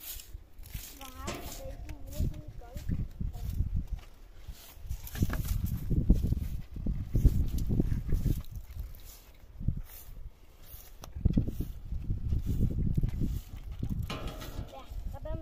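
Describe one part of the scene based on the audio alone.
A broom scrapes and brushes across dusty ground.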